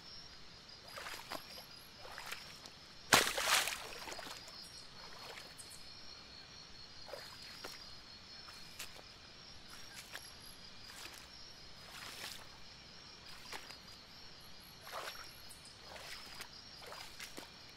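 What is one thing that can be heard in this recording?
Water splashes as a fish leaps out and drops back in.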